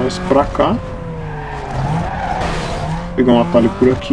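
Tyres screech as a car slides through a sharp turn.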